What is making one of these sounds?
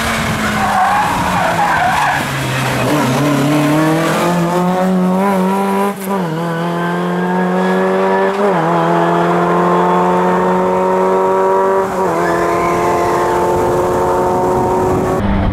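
A rally car engine revs hard and shifts gears as the car speeds away.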